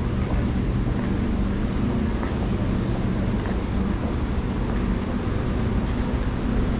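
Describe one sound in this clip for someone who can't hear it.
A stopped train hums steadily in an echoing station.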